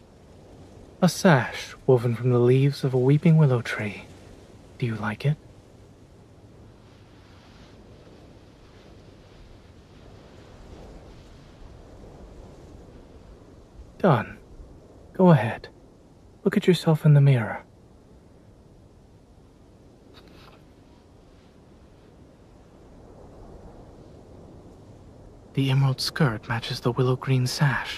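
A young man speaks softly and calmly, close by, in short phrases.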